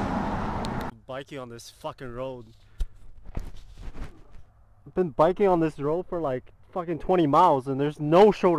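A young man talks calmly and close by, outdoors.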